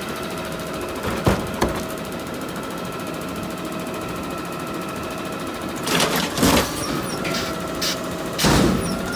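A truck engine idles with a steady hum.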